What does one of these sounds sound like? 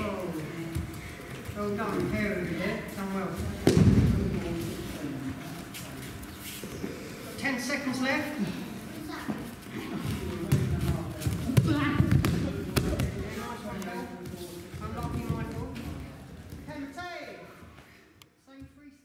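Men's voices talk and call out in a large echoing hall.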